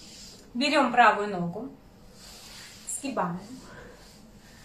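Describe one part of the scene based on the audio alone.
A young woman speaks close by, with strained, moaning exclamations.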